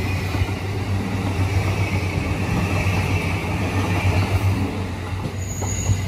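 An electric commuter train rumbles past through a station.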